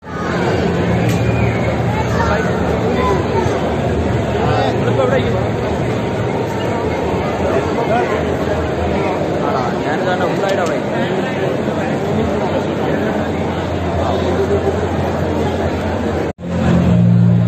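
A crowd of people chatters in a large, echoing hall.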